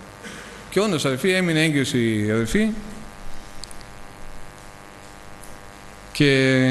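A middle-aged man speaks calmly through a microphone in a large echoing room.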